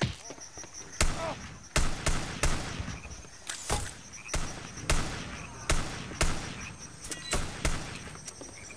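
Loud revolver shots ring out in quick bursts.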